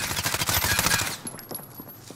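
A submachine gun fires a rapid burst at close range.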